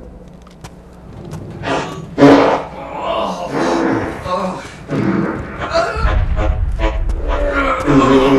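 Footsteps scuff on hard ground.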